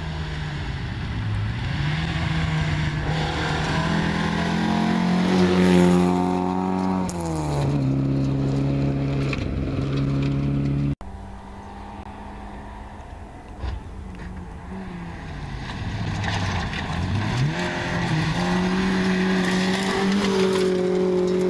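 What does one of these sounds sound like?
Tyres crunch on gravel.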